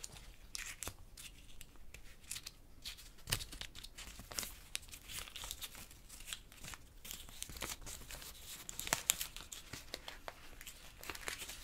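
Fingernails tap and click on a small object close to a microphone.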